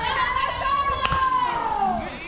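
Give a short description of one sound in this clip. A bat cracks sharply against a baseball outdoors.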